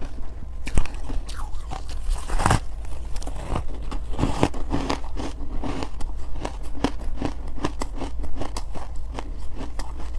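A young woman chews soft cake close to a microphone, with wet, sticky mouth sounds.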